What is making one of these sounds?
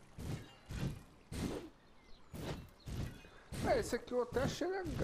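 Sharp hits and bursts of a video game fight sound in quick succession.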